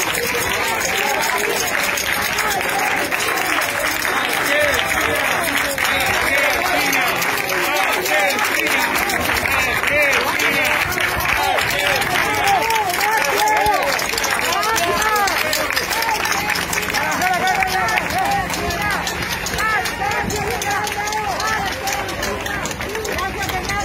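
A crowd of men and women talk and shout all at once, close by outdoors.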